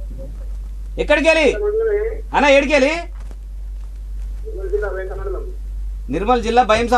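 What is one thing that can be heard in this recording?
A young man sings a folk melody close to a microphone, in short phrases.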